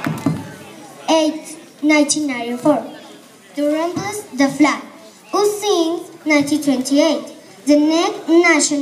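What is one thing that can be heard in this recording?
A group of children chants loudly together.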